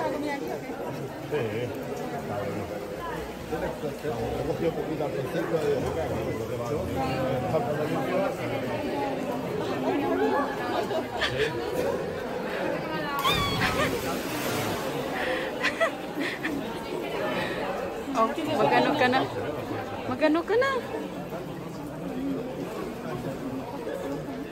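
Voices of a crowd chatter and call out, echoing in a large rocky space.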